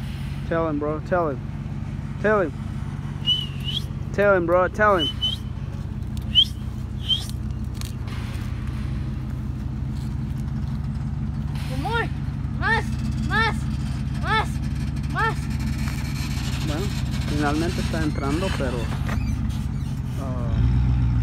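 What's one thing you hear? A truck engine idles with a steady low rumble nearby.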